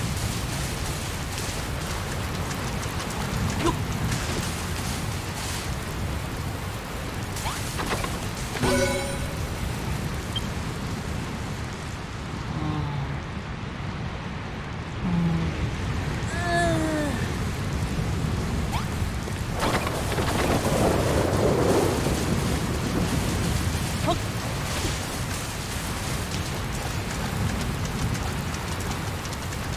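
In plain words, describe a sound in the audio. Wind blows steadily through a snowstorm.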